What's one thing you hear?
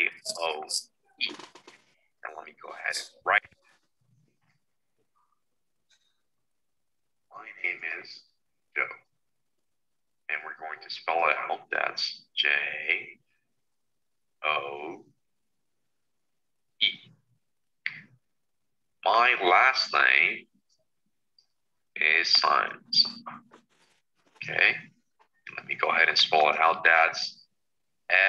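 A man speaks calmly and slowly into a microphone.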